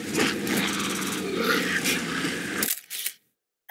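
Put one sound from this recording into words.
Water splashes as a small dinosaur wades.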